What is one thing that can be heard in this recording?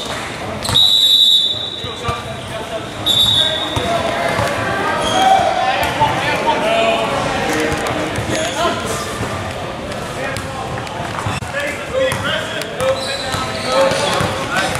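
Basketball shoes squeak on a gym floor.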